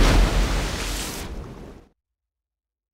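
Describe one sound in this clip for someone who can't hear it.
A loud crash bursts and fades.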